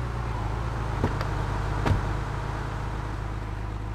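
Footsteps tap on pavement.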